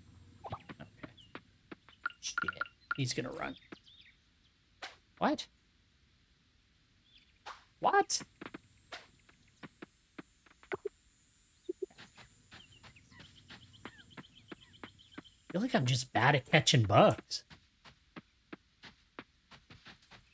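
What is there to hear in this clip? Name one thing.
Light footsteps patter quickly on a dirt path.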